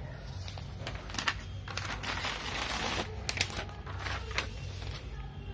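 Sheets of paper rustle and crinkle as they are handled.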